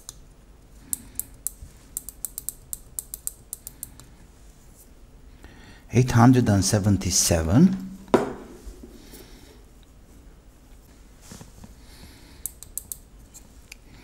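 Fingers tap buttons on a small device with quick light clicks.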